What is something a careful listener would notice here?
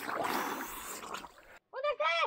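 Water sloshes and splashes close by.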